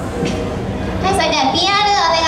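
A young woman sings into a microphone through loudspeakers.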